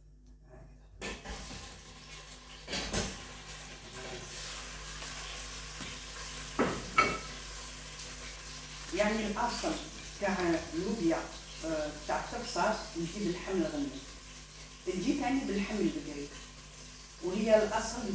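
Meat sizzles and crackles in a hot pot.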